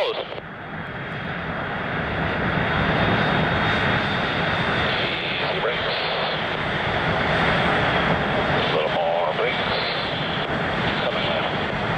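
A jet engine whines with a high, shrill tone.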